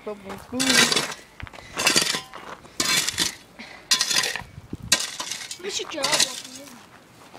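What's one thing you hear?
A shovel scrapes and digs into gravel in repeated strokes.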